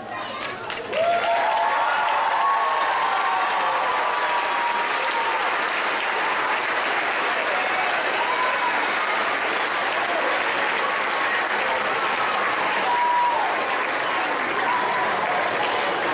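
A crowd of children cheers and shouts loudly.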